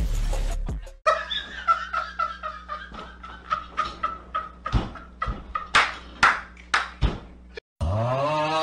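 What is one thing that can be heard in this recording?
A man laughs loudly and hysterically in short bursts.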